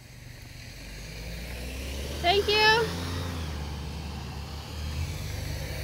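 A car engine rumbles as a car passes close by.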